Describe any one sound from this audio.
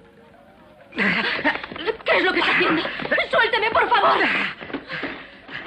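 A woman cries out loudly in alarm.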